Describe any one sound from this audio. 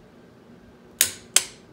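A metal tool clicks against a metal frame.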